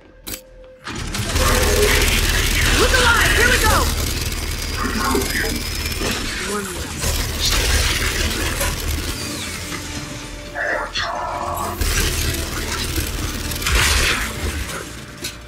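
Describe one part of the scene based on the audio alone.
Gunfire rattles loudly in rapid bursts.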